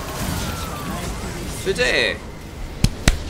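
Game spell effects whoosh and crackle as a battle rages.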